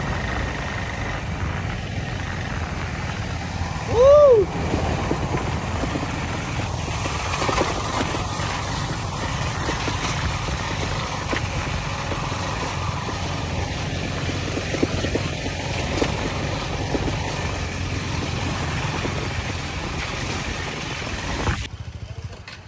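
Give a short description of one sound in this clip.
Motorcycle engines rumble steadily while riding.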